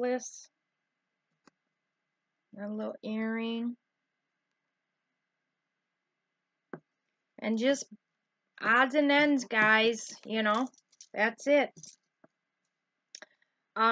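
A middle-aged woman speaks calmly and close by, with pauses.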